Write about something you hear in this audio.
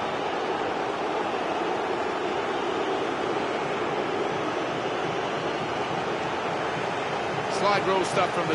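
A stadium crowd cheers and roars loudly.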